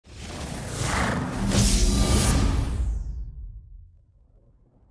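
A bright electronic chime swells and fades away.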